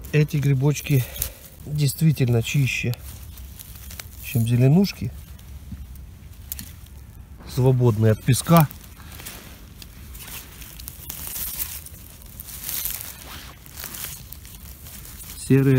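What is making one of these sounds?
A knife scrapes through soil and needles.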